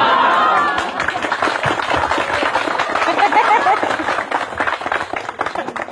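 A woman laughs loudly through a microphone.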